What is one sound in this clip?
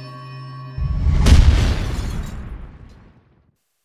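Glass shatters.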